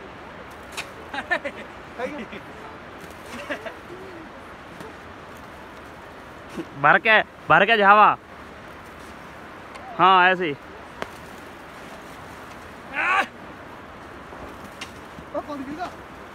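A stick thuds into snow.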